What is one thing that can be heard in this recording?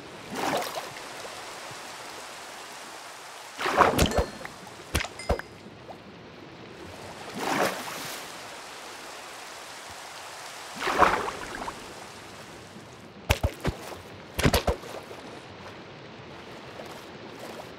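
Water bubbles and swishes steadily underwater.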